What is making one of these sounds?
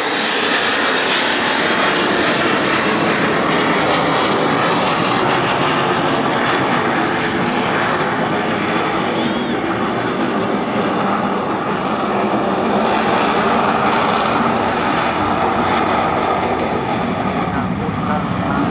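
A jet roars loudly overhead and slowly fades into the distance.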